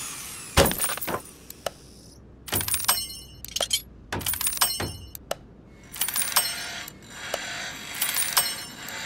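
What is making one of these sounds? Short electronic chimes and clicks sound in bursts from a game.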